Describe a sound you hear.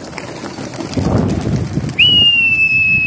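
A pigeon's wings flap loudly close by.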